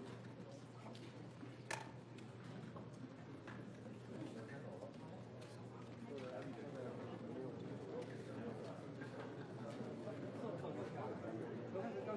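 Many people murmur and chat in a large room.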